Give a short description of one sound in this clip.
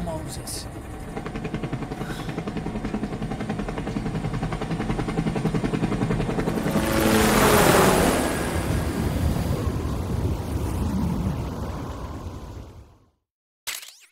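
A helicopter's rotor thumps loudly and steadily.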